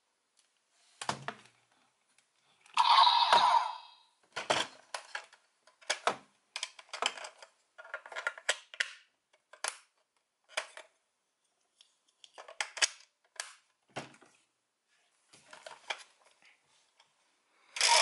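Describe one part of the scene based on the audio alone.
Plastic parts click and snap as a toy is handled.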